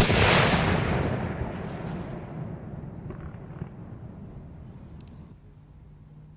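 A loud blast booms overhead and rumbles away into the distance outdoors.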